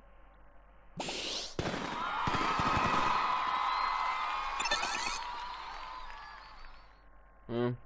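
A burst of confetti pops with a bright crackling whoosh.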